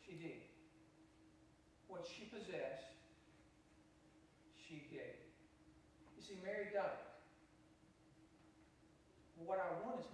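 An elderly man speaks calmly through a microphone in a large echoing hall, pausing between phrases.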